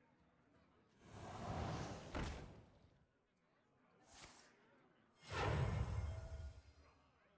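A game's magical spell effect bursts with a loud whoosh and shimmer.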